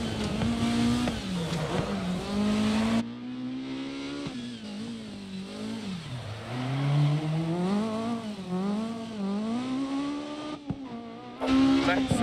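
A rally car engine revs hard, its pitch rising and dropping with gear changes.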